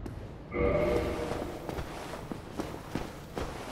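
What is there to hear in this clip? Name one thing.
Heavy armoured footsteps clank on stone.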